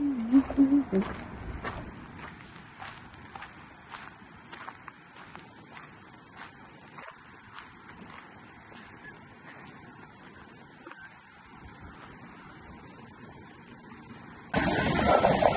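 Footsteps crunch softly on sand and gravel.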